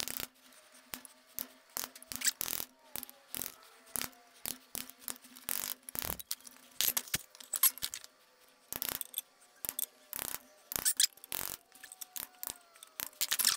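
A chisel scrapes and knocks against wood.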